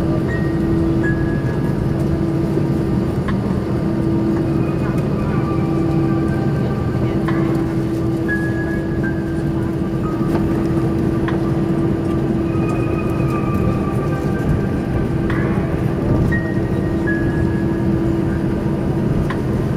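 Jet engines drone steadily, heard from inside an aircraft cabin rolling along a runway.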